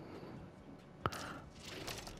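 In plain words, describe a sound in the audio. A short menu click sounds.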